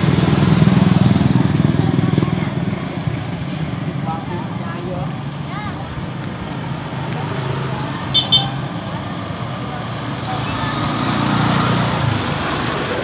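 Vehicles drive past on a road nearby.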